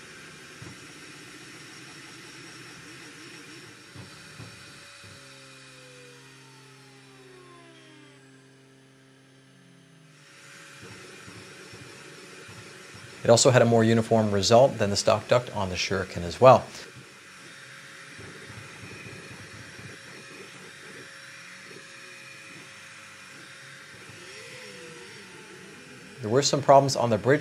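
A 3D printer's motors whir and whine as the print head moves.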